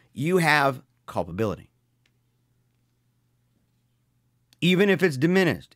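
A man speaks with animation close to a microphone, with pauses.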